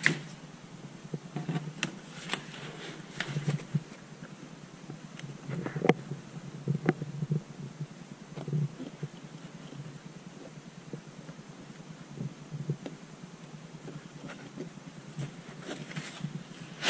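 Hands handle a rubbery case, with soft knocks and rustles.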